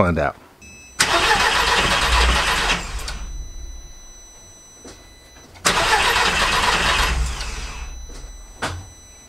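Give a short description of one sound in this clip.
A car engine revs up twice in loud bursts.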